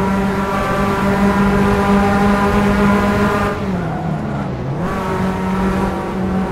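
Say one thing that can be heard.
A racing car engine roars at a steady high pitch, drops briefly, then revs back up.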